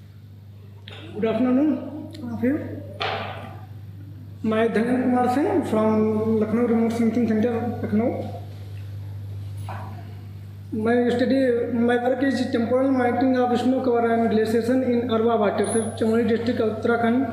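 A man speaks steadily through a microphone in a room with some echo.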